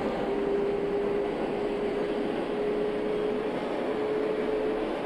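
An electric motor whines with a steady high hum.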